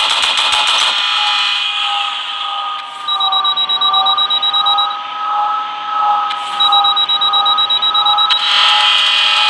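A spaceship engine hums and wavers in pitch.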